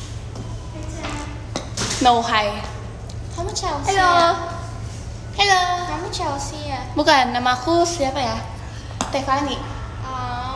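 A young woman talks close by, lively and playful.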